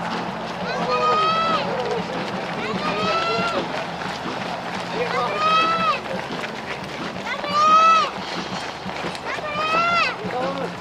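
Many runners' footsteps patter on a paved road.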